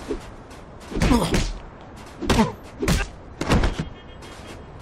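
Fists land heavy punches, one after another.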